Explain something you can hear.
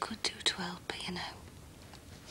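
A middle-aged woman speaks softly, close by.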